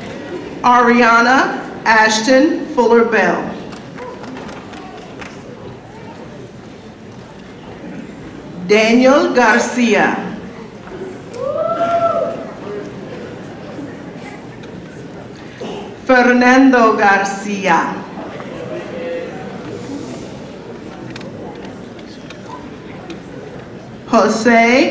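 A woman reads names out over a loudspeaker in a large echoing hall.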